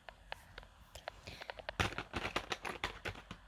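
Plastic toys rattle and clatter as a hand rummages among them.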